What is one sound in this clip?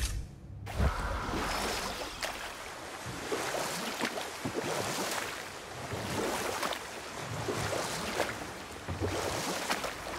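Oars dip and splash in the water in a steady rhythm.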